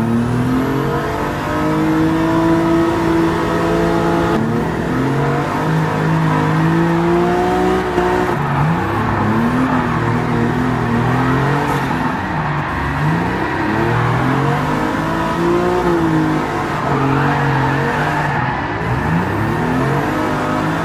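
A car engine roars loudly, revving up and dropping as the gears shift.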